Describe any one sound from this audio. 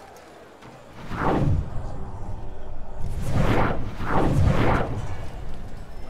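A deep whooshing rush swells and fades several times.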